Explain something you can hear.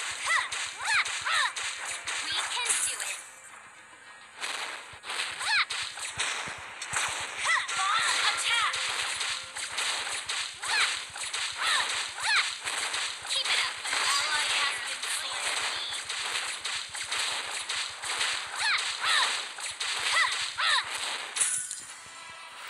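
Game attack effects clash and zap rapidly.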